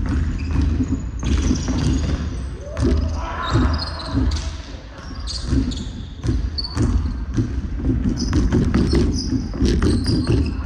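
Basketballs bounce on a wooden floor, echoing through a large hall.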